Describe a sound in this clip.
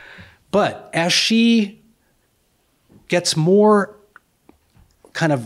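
An older man speaks with animation into a microphone.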